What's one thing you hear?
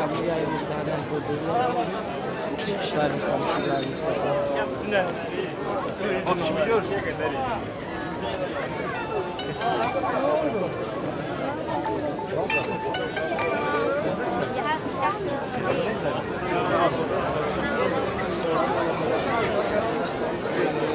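Men shout and chant close by with excitement.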